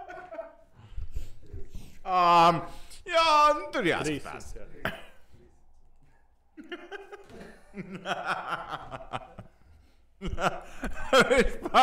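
A second man laughs and talks into a microphone close by.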